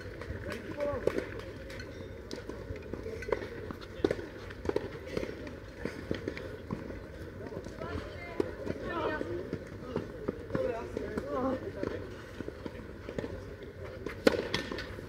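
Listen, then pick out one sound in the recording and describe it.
Players' shoes scuff and slide on the court.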